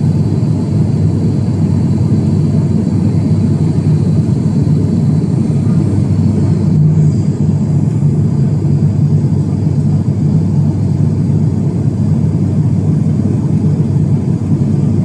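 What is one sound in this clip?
A propeller engine drones steadily and loudly, heard from inside the cabin.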